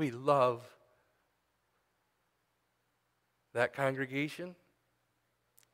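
A middle-aged man speaks calmly through a microphone, in short phrases with pauses.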